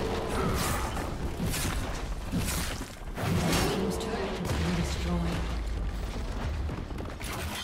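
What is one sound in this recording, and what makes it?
Magical spell effects whoosh and crackle in quick bursts.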